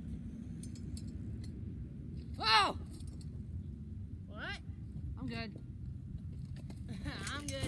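A bicycle rolls over grass.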